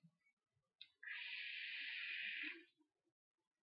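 A man draws in sharply on a vape with a soft, steady hiss.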